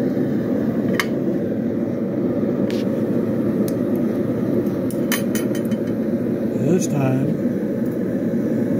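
Metal taps and clinks against a steel plate.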